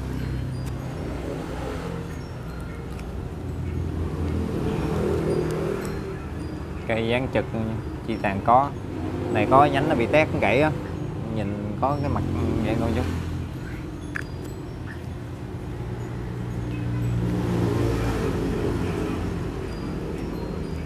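A middle-aged man talks calmly and close through a clip-on microphone.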